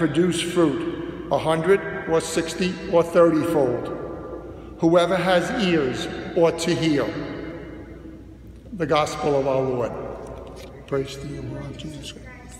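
An elderly man speaks calmly into a microphone in a large echoing room.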